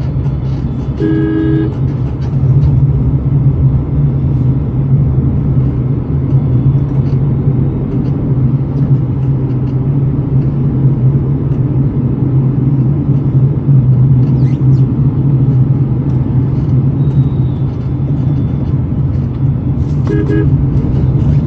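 A vehicle horn honks nearby in traffic.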